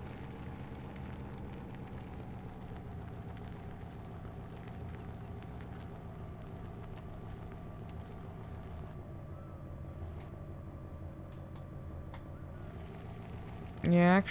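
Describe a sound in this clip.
A truck engine idles steadily with a low rumble.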